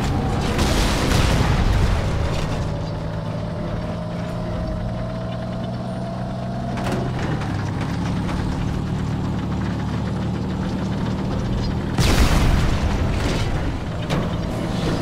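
A heavy gun fires loud blasts in bursts.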